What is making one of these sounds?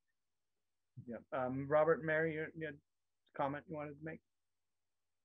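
An older man with a deeper voice speaks calmly over an online call.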